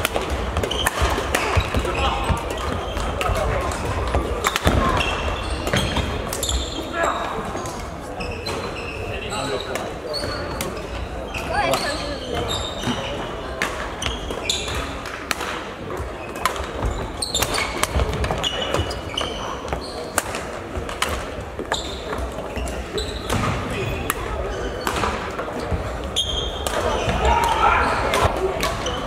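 Badminton rackets smack a shuttlecock back and forth.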